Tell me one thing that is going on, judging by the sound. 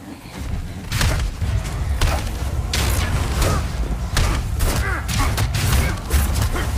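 A creature growls and shrieks.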